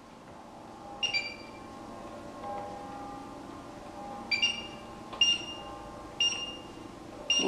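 A cooker's touch control beeps several times.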